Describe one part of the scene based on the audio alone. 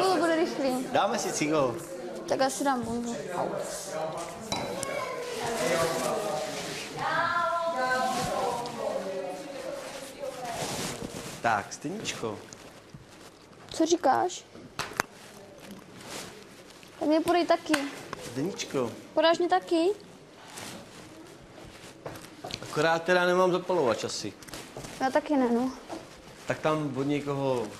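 A young man talks animatedly up close.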